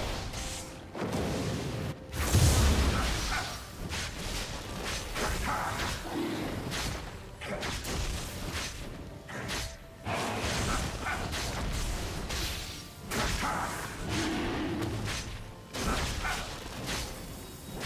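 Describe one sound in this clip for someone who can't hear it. Fantasy battle effects clash, whoosh and crackle.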